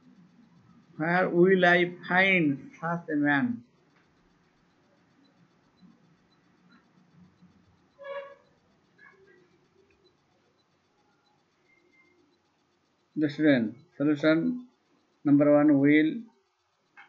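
A man speaks calmly and clearly into a microphone, in short phrases.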